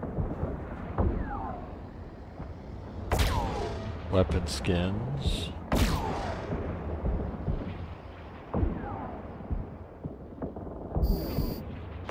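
Laser weapons fire in sharp, zapping blasts.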